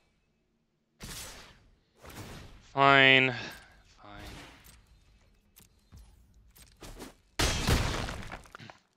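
Digital game effects whoosh and thud in short bursts.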